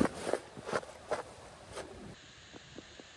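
Gloved hands brush and rustle across a heavy cotton sheet.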